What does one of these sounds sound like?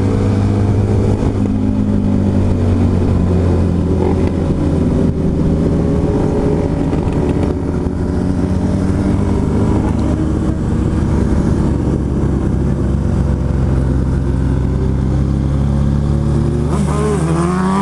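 A motorcycle engine drones loudly at speed close by.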